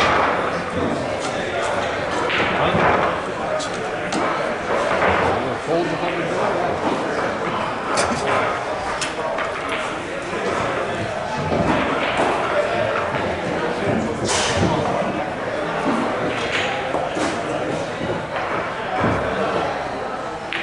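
Several adult men chat quietly nearby in a large room.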